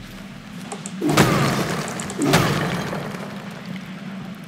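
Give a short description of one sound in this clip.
Rocks crash and rumble loudly.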